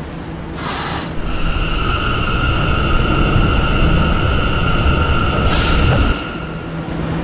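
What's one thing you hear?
A subway train's motor whines and rumbles as it pulls away and then stops.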